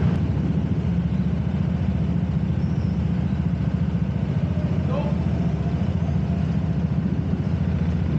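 A go-kart engine drones loudly and steadily close by.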